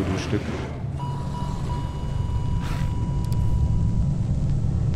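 An electronic heart monitor sounds a long, steady flatline tone.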